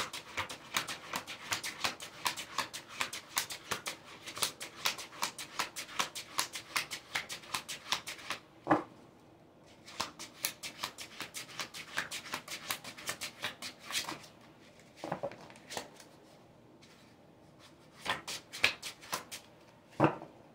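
Cards are shuffled with quick, rapid riffling flutters.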